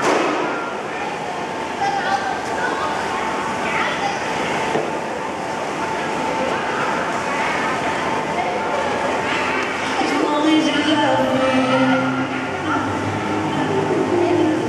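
A crowd of children and adults chatter and call out in a large echoing hall.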